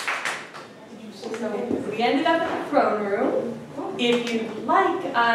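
A woman speaks with animation to an audience.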